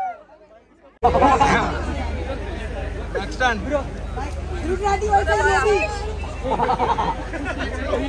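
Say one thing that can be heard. A crowd of young people chatters and shouts excitedly close by.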